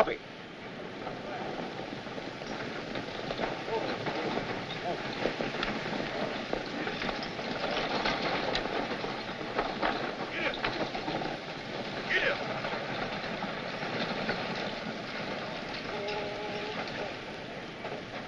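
Horses gallop in from a distance and come closer.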